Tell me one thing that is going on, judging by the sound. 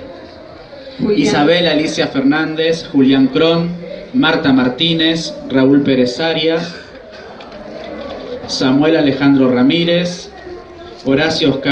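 A middle-aged man reads aloud through a microphone with expression.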